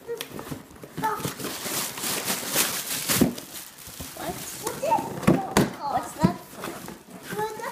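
A young child talks excitedly nearby.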